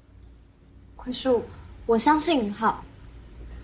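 A young woman speaks pleadingly, close by.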